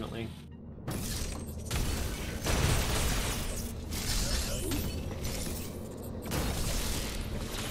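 Electronic game music plays.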